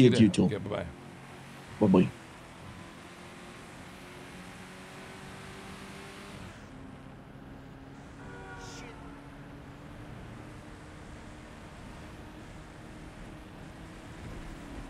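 A car engine hums steadily as the car speeds along a road.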